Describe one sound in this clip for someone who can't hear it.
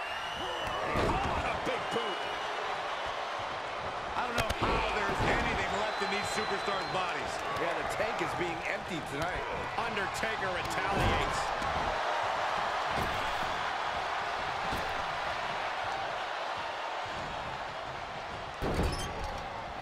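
Heavy thuds of bodies slamming onto a wrestling mat ring out now and then.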